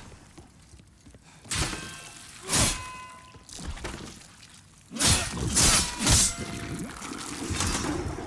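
Sword strikes clang in a fight.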